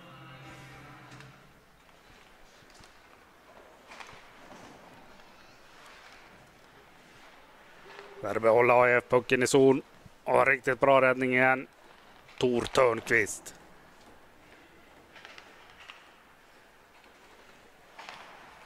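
Ice skates scrape and glide across an ice rink.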